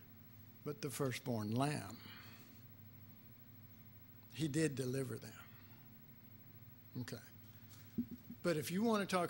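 An older man speaks calmly through a microphone in a room with some echo.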